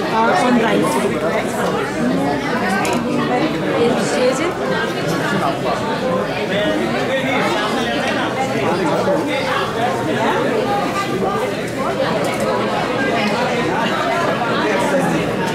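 Serving spoons scrape and clink against metal pots.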